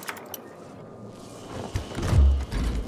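A heavy metal chest lid creaks open.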